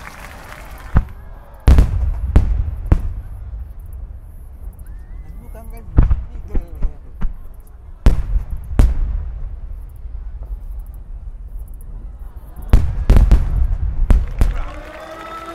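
Single fireworks shells burst with loud, echoing booms.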